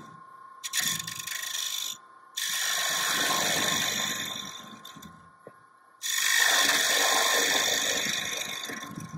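A gouge scrapes and hisses against spinning wood in bursts.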